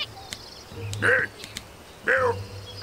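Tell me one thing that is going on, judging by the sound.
A cartoon penguin squawks.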